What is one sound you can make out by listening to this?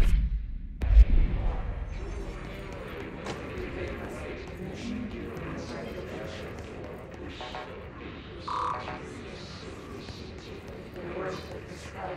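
Footsteps hurry across a hard floor.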